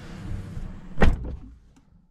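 A car door handle clicks open.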